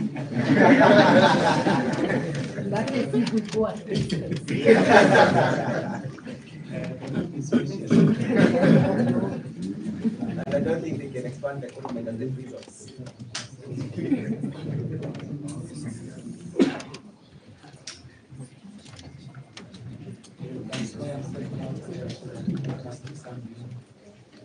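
A crowd of men talks and laughs loudly in an echoing room.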